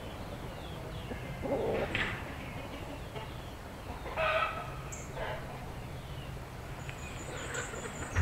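A bird chirps nearby in short bursts.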